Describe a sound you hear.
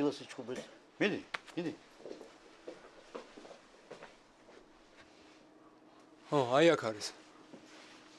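A young man speaks tensely in reply.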